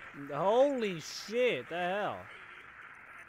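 A young man makes sliding, sing-song sounds close to a microphone.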